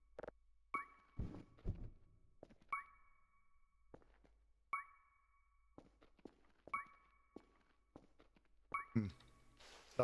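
A handheld detector beeps at a steady pace.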